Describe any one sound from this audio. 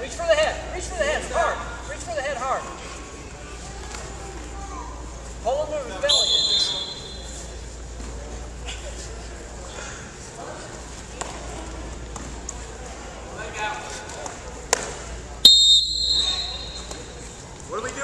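Wrestlers scuffle and thud onto a wrestling mat.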